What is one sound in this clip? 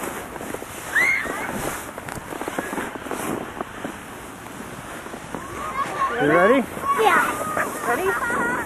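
Young children shout and squeal with excitement nearby, outdoors.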